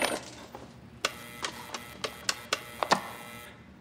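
Papers rustle and tap as they are handled.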